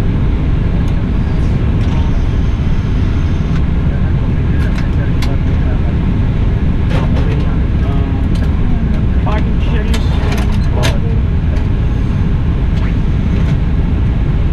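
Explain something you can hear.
Switches click now and then.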